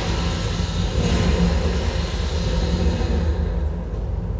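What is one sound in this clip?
A blade swings with magical whooshing bursts.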